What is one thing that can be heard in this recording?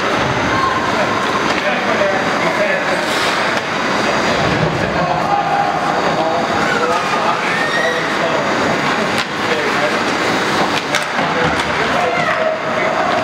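Hockey sticks clack against a puck and the ice.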